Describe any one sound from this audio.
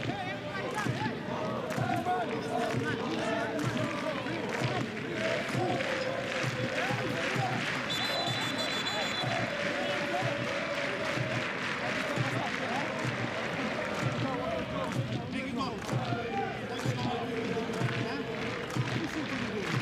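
A large crowd chants and sings loudly in an open stadium.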